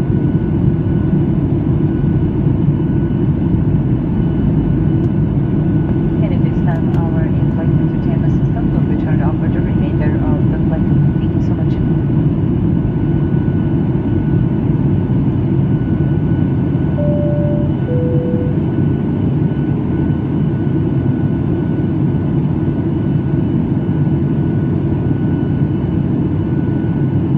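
A jet engine roars steadily in the cabin of a plane in flight.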